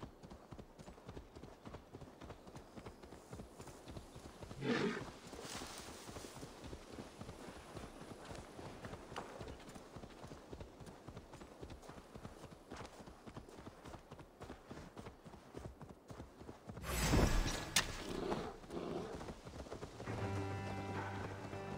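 A horse gallops with quick, steady hoofbeats on a dirt path.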